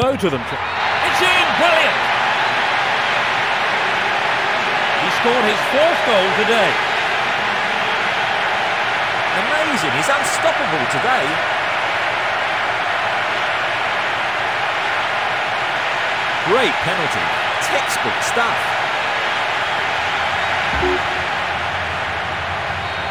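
A large crowd cheers and roars loudly in a stadium.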